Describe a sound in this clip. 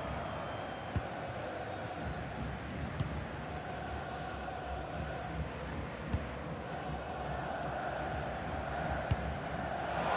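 A football is kicked with short, dull thuds.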